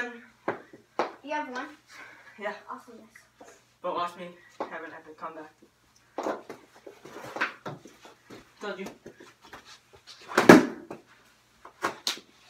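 Hockey sticks clack against a hard ball.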